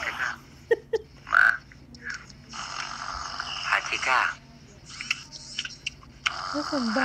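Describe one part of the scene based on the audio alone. A woman talks over a video call through a phone speaker.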